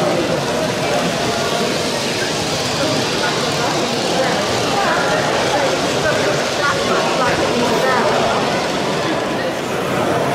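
A small electric model train hums softly along its track.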